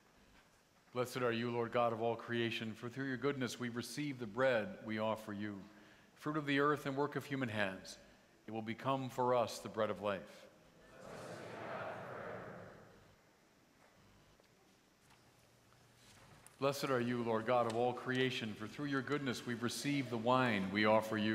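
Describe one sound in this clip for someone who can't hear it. A man chants into a microphone, echoing through a large hall.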